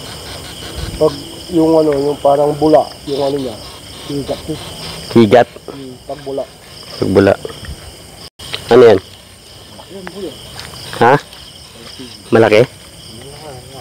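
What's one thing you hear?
A man talks in short bursts nearby.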